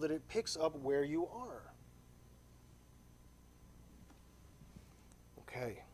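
A man speaks calmly into a microphone in a large hall, pausing between phrases.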